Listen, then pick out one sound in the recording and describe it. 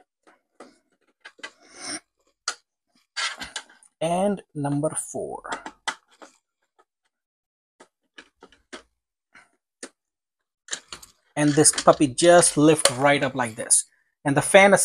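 Small plastic and metal parts click and tap as they are handled.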